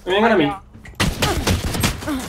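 Gunshots crack from a pistol.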